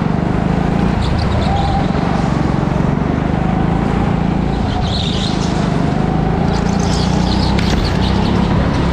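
Kart tyres squeal on the track in the turns.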